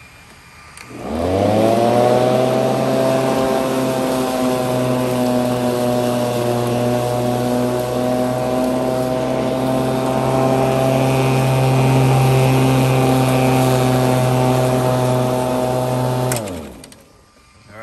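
An electric lawn mower motor whirs up to speed, hums steadily, then winds down.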